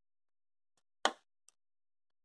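Pliers snip a component lead with a sharp click.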